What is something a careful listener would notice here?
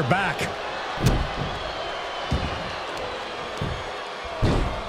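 Heavy thuds of blows land on a wrestler.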